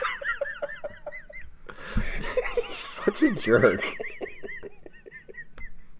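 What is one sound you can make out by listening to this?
A second man laughs.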